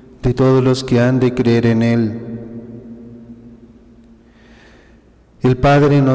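A man reads out slowly and calmly into a microphone, in a reverberant hall.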